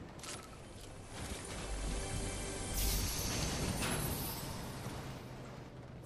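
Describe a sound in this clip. A treasure chest hums with a shimmering tone.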